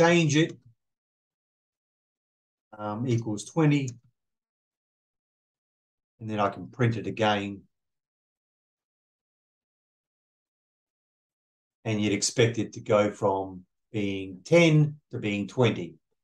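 A middle-aged man speaks calmly and close into a microphone, pausing between phrases.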